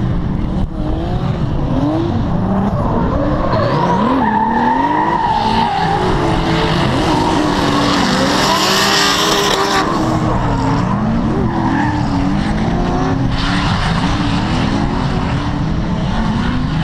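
Racing car engines rev and roar hard in the distance, rising and falling in pitch.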